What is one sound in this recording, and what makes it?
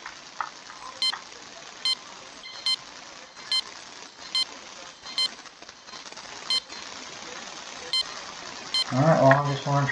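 A metal detector beeps in short, evenly spaced pips.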